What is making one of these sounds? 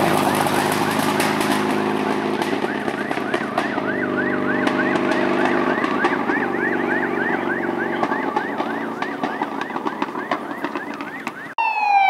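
Gravel crackles under spinning tyres.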